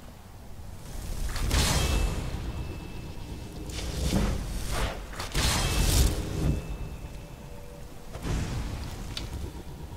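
A magic spell bursts with a loud whooshing crackle.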